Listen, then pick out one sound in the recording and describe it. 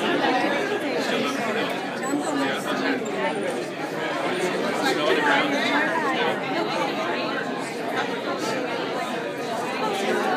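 An elderly woman talks warmly up close.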